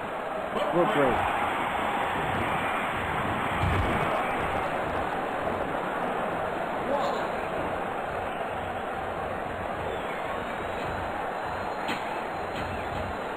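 A large crowd roars and cheers steadily throughout.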